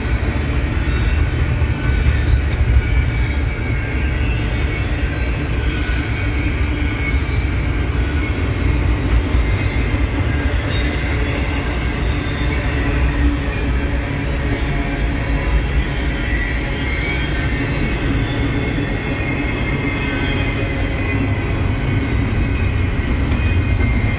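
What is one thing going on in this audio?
A long freight train rumbles steadily past nearby.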